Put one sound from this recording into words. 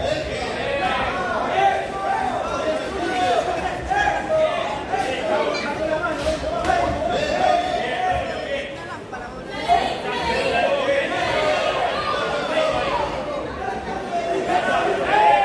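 A crowd shouts and cheers in a large echoing hall.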